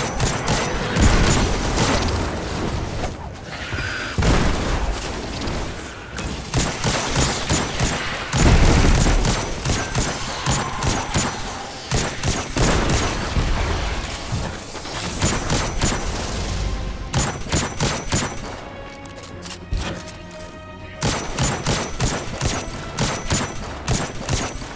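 Gunshots fire in quick bursts with loud booms.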